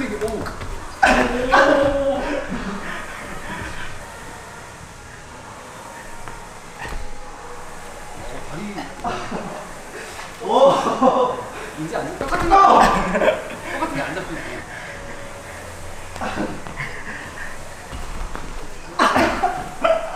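A body thuds onto a floor mat.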